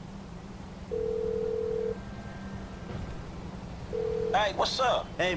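A phone dials out with a ringing tone.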